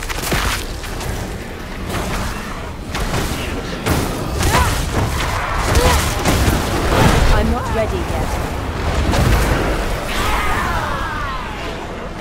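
Weapons strike monsters with heavy thuds.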